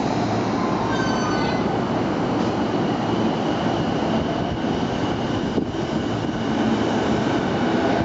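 An electric train pulls away with a rising motor whine.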